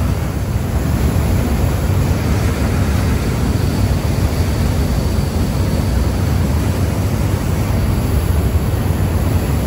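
Water churns and splashes steadily in a boat's wake.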